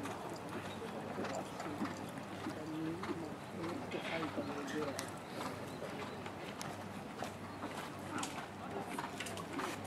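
Horses' hooves thud softly on sand.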